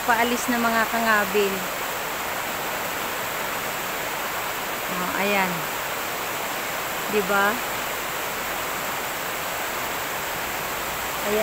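A fast river rushes and splashes over rocks nearby.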